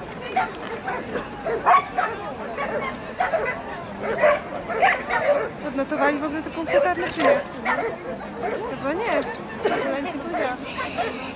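A man calls out commands to a dog outdoors.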